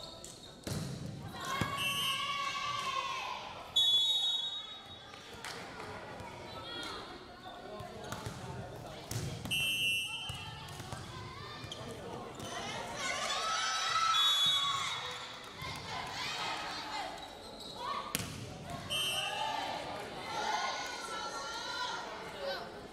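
Young women shout and cheer loudly in an echoing hall.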